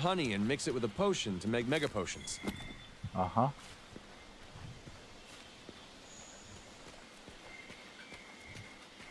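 Footsteps patter softly on dirt.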